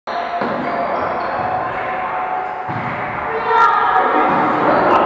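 Players call out to each other in a large echoing hall.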